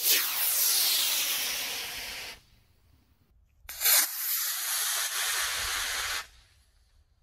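A small rocket launches with a loud, rushing hiss that cuts off suddenly.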